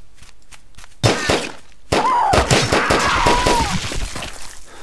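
A blaster fires bursts of zapping energy.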